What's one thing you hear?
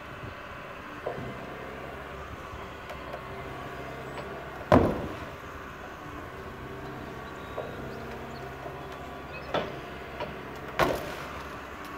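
Metal and debris bang sharply as an excavator works.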